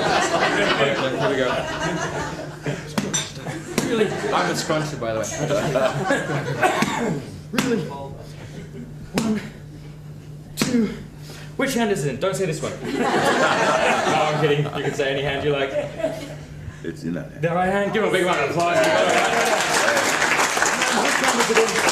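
An elderly man laughs and answers.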